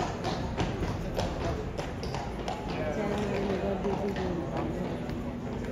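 Horses' hooves clop on stone paving.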